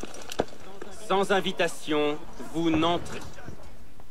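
A man speaks firmly and curtly.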